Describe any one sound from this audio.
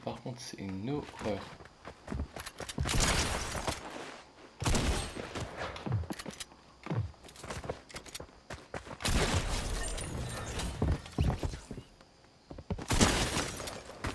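A pickaxe strikes wood again and again.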